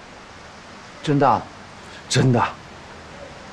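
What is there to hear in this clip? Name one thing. Another young man answers briefly, close by.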